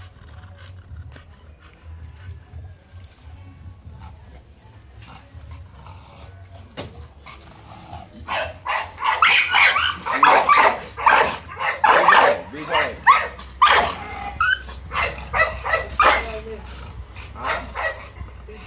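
Dogs pant heavily close by.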